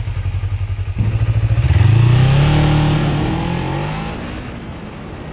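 A motorcycle engine revs up, rising in pitch.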